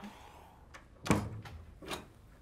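A door closes with a thud.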